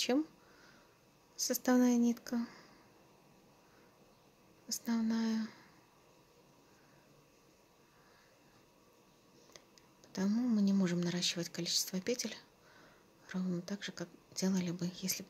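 A crochet hook softly pulls yarn through loops.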